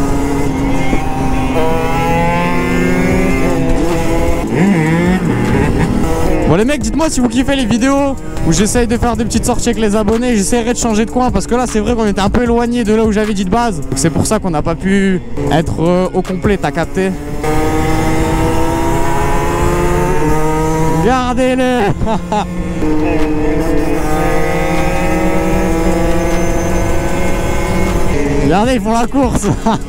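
A motorcycle engine drones close by, revving up and down as gears change.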